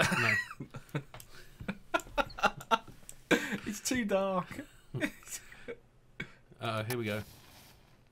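Two men laugh heartily close to a microphone.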